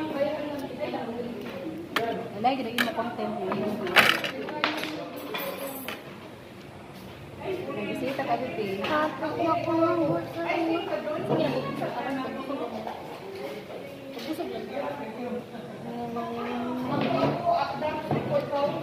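A young woman talks nearby in a casual tone.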